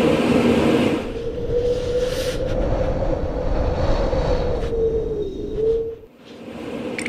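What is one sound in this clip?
Wind howls in a snowstorm.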